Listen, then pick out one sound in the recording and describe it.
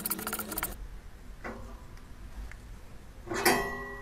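A metal wire rack rattles as items are placed in it.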